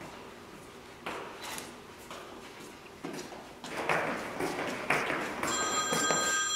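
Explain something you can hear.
Footsteps tap along a hard floor in an echoing hallway.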